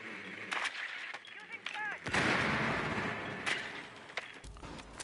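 A smoke grenade hisses loudly.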